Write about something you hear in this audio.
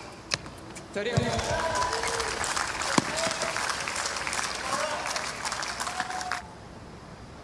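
A stadium crowd applauds.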